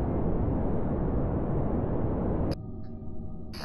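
A rocket engine roars steadily, then cuts off abruptly.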